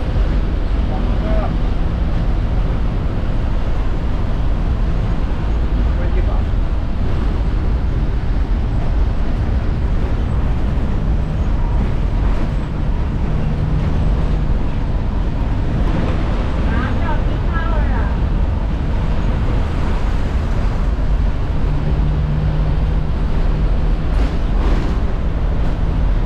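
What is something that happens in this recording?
A diesel city bus engine rumbles inside the cabin while driving.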